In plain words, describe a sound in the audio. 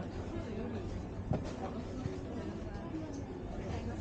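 A cardboard box rustles as a hand pulls it from a shelf.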